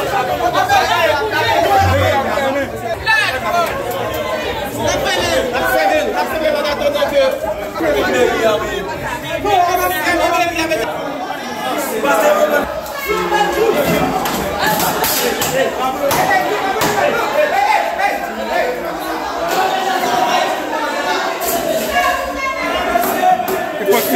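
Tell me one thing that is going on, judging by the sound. A crowd of men talk and shout loudly in an echoing room.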